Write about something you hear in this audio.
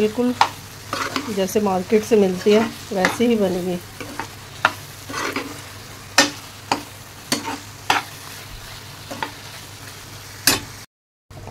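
A metal spoon scrapes and clicks against a pan.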